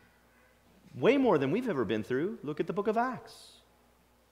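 A middle-aged man speaks calmly into a microphone in a reverberant hall.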